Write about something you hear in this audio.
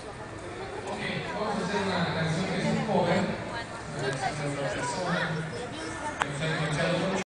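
A small band plays music live outdoors, heard from a distance.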